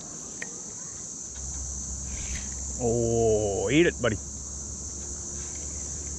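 A fishing reel whirs softly as its handle is turned.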